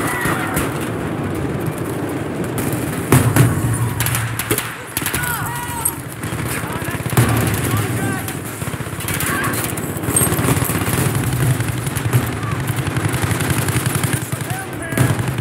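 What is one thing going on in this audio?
A low, steady rumble of explosions and battle noise runs throughout.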